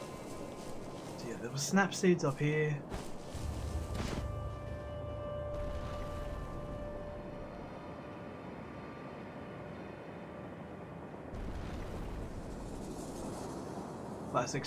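Wind blows steadily through falling snow.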